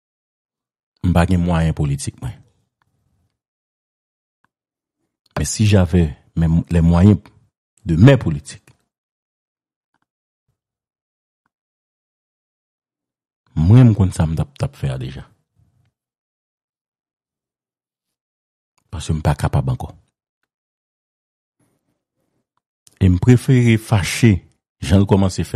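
A man speaks in bursts over a phone line, with long pauses between.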